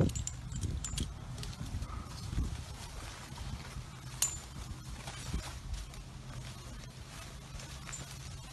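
Climbing spikes thud into tree bark.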